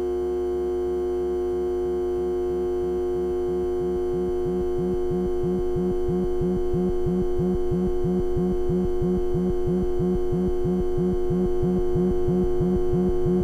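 A modular synthesizer pulses in a fast, even rhythm.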